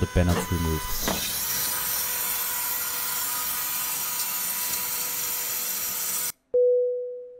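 A hydraulic landing gear mechanism whirs and hisses steadily.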